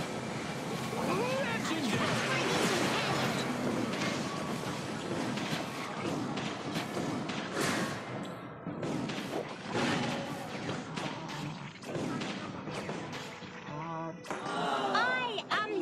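Magic spells burst and clash in a game battle.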